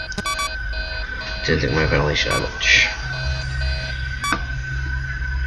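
Short electronic beeps sound.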